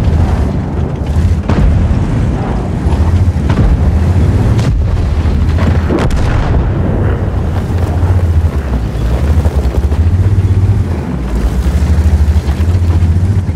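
A tank engine rumbles and idles steadily.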